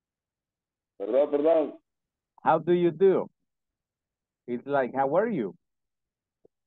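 A woman speaks clearly in short phrases over an online call.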